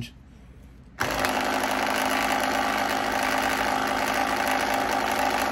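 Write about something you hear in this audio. A small electric motor switches on and hums steadily.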